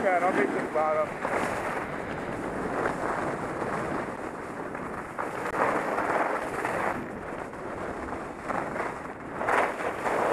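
Skis or a snowboard scrape steadily over snow.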